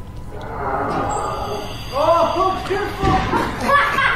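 A chair tips over and thuds onto the floor.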